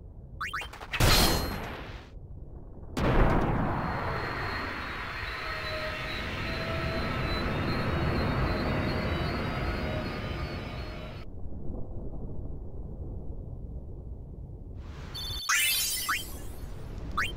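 Lightning crackles and booms loudly.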